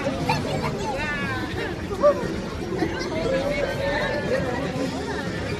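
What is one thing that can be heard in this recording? A crowd chatters and shouts nearby.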